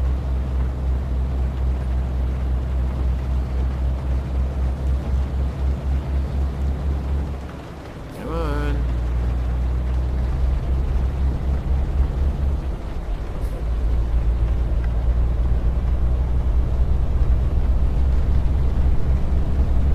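A truck engine drones steadily, with a brief dip as gears change.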